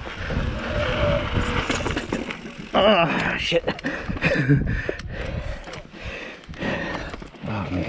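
A bicycle rattles and clacks over bumps.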